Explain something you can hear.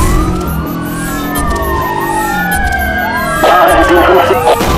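Several sirens wail together as the car nears a roadblock.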